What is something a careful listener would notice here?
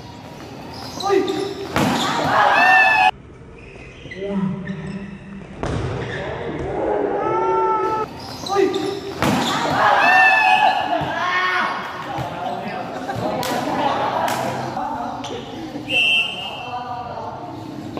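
Players call out loudly to one another.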